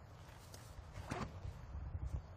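A disc is thrown with a quick whoosh.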